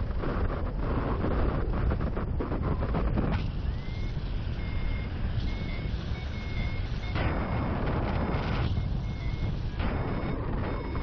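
Wind roars and buffets loudly against a microphone high in the open air.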